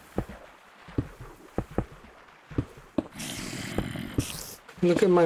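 Stone blocks thud softly as they are placed one after another.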